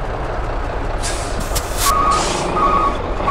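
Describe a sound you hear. Air brakes release with a sharp hiss.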